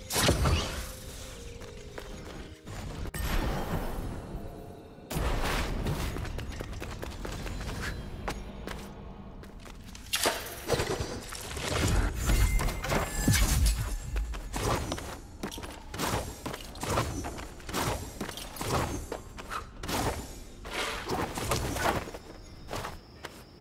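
Footsteps patter quickly as a game character runs and leaps.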